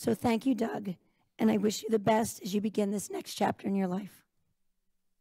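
A middle-aged woman speaks calmly into a microphone.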